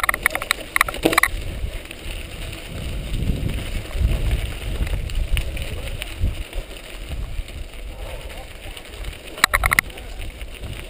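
A bicycle rattles as it bumps over the ground.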